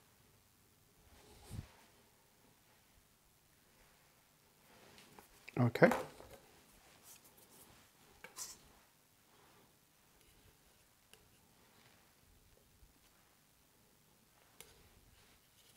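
Small objects knock and tap lightly on a tabletop.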